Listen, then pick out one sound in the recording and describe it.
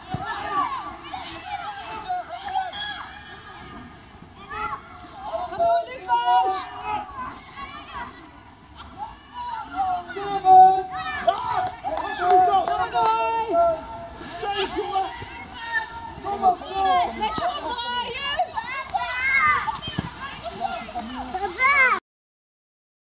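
Children shout to each other across an outdoor pitch.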